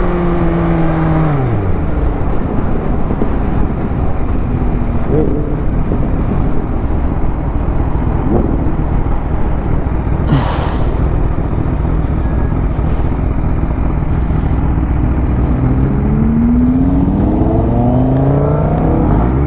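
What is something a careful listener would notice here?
A motorcycle engine roars and changes pitch as it speeds up and shifts gears.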